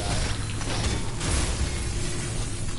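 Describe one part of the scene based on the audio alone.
Sparks burst and crackle in a loud explosion.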